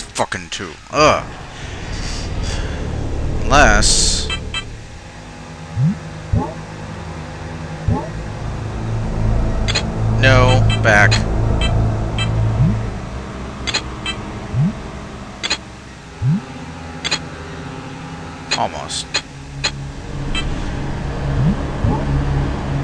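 Short electronic blips and rising chirps sound.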